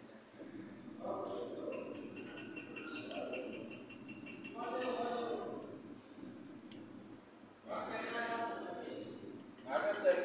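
A man speaks calmly through a face mask, explaining nearby.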